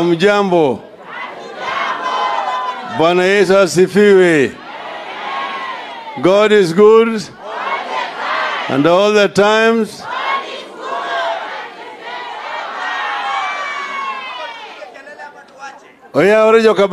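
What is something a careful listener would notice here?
A crowd murmurs and calls out in response.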